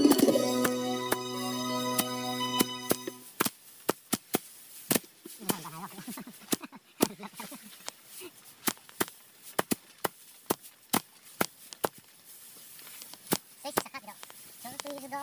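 Wooden sticks beat dry rice stalks with repeated dull thumps.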